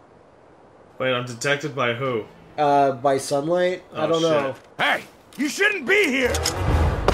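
A man shouts a short call.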